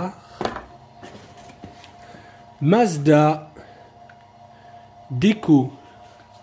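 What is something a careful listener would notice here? Small cardboard boxes scrape against each other.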